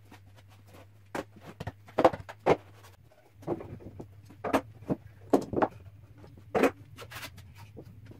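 Clamps clack against wood.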